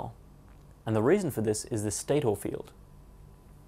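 A young man speaks clearly and calmly into a close microphone.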